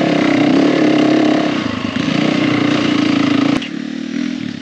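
A dirt bike engine roars at steady high revs.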